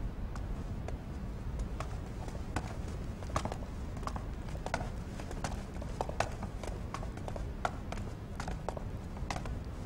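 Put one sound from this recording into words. Footsteps walk slowly across a stone floor.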